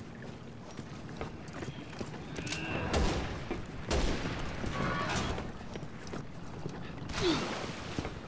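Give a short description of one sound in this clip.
Heavy footsteps thud on boards as a man runs.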